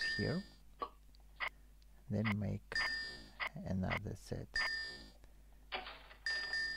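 Short electronic chimes ring out several times.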